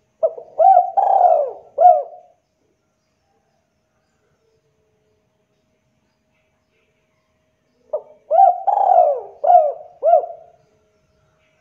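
A spotted dove coos in short phrases.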